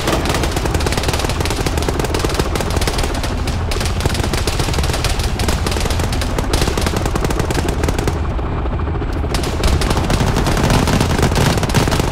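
A helicopter's rotor thumps and its engine roars close by.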